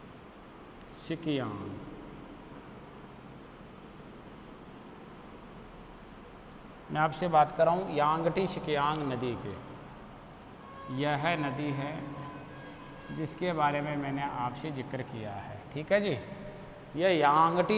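A man lectures calmly through a microphone, pausing between phrases.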